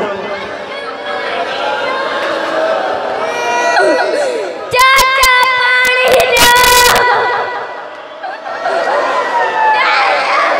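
A man chants loudly into a microphone, heard through loudspeakers.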